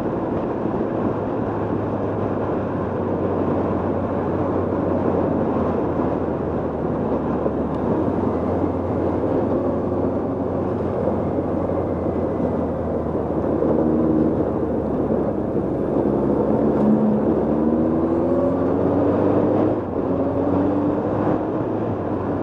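A motorcycle engine runs steadily, its pitch rising and falling as it accelerates.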